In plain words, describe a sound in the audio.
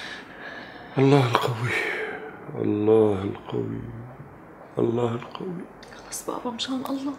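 A middle-aged man speaks close by in a strained, emotional voice.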